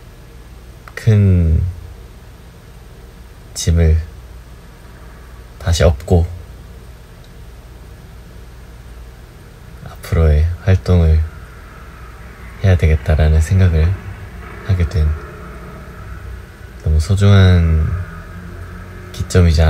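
A young man speaks calmly in short phrases over an online call.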